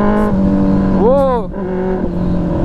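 A motorcycle engine revs up briefly.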